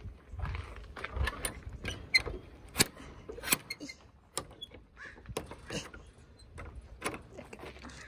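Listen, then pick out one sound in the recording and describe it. A metal gate latch clicks and rattles as a hand works it.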